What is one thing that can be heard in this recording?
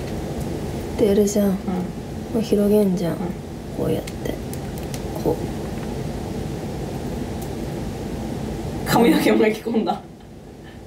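A young woman speaks softly close by, in short bursts.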